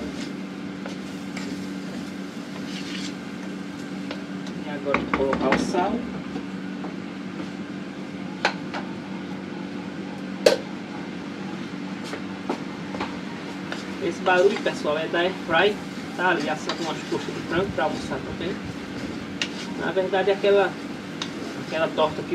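A spoon scrapes and stirs food in a pot.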